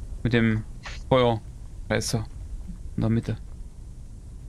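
A man speaks in short bursts close to a microphone.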